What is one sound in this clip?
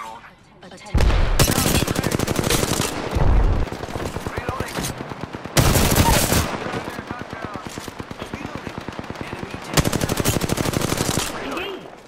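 An automatic gun fires rapid bursts of loud shots close by.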